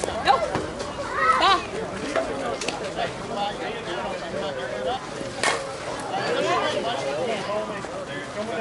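Players shout and cheer outdoors at a distance.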